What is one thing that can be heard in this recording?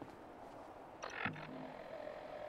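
A menu opens with a short electronic chime.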